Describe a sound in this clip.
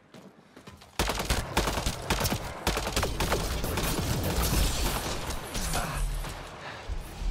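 A rifle fires in rapid bursts of loud gunshots.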